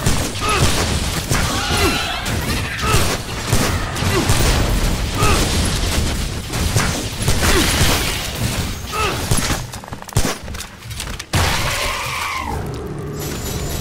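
Flying creatures shriek and screech.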